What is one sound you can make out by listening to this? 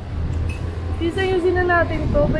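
A teenage boy speaks up close.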